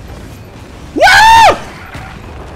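A large creature lets out a loud, shrill cry.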